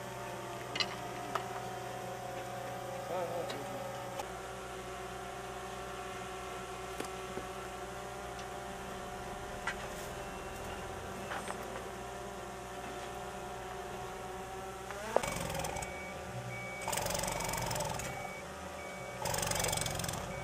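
A shovel scrapes and knocks against dry earth.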